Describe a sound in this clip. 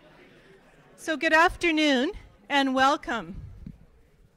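A woman speaks through a microphone in a large echoing hall.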